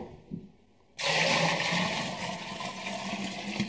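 Water pours splashing into a bucket.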